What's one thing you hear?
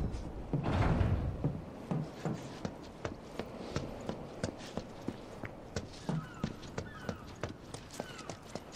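Footsteps tap quickly and steadily on hard ground.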